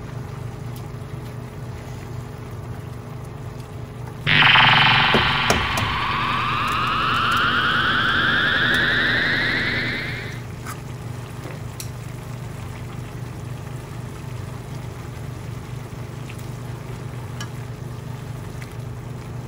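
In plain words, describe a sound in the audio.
Chopsticks stir noodles in a metal pan.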